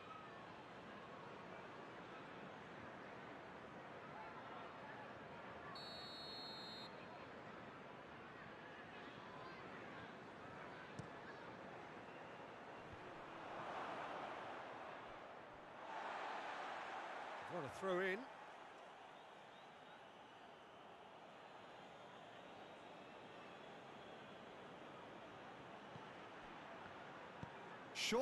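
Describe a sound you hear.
A large stadium crowd murmurs and cheers steadily, swelling now and then.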